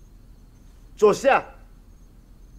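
A young man answers sharply.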